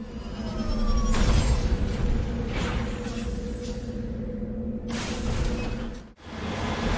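A vehicle engine rumbles as heavy tyres roll over rough ground.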